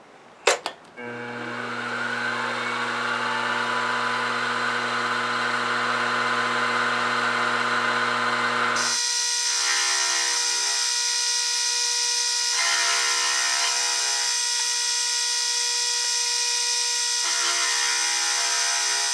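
A milling machine motor starts and whirs steadily with a high whine.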